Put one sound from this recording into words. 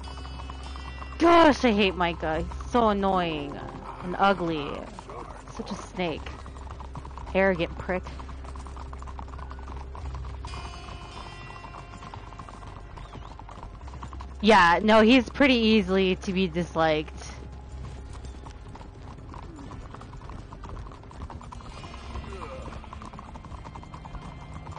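Horse hooves clop steadily on a dirt road.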